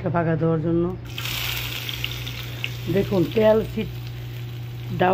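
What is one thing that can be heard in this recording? Hot oil sizzles and crackles in a frying pan.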